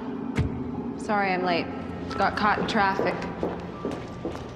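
A woman speaks apologetically nearby.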